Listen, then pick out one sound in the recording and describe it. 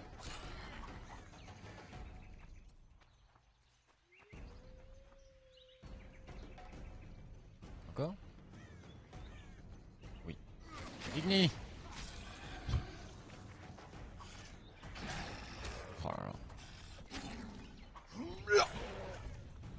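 A sword swishes and strikes in a fight.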